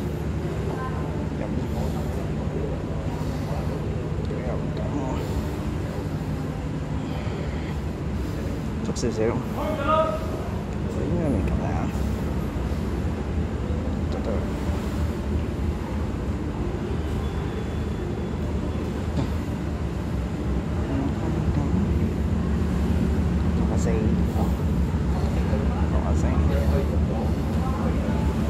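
Water laps gently against a harbour wall, outdoors with a low steady rumble.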